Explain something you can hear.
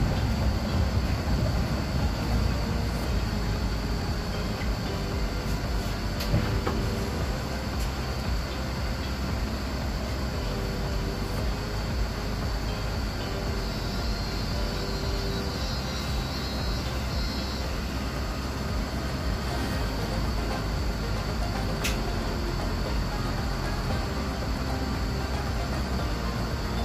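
Tram wheels clatter over the rails.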